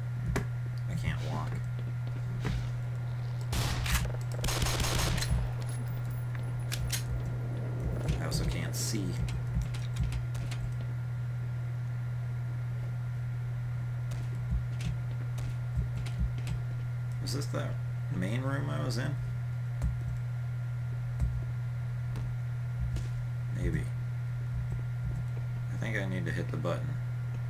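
Footsteps clank on a metal grating floor.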